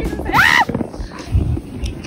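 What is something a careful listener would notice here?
A young woman shrieks loudly.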